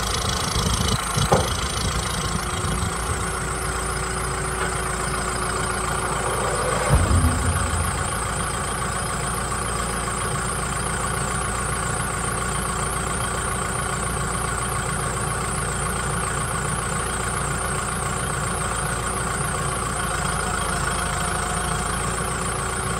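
A tractor engine runs with a steady, droning hum.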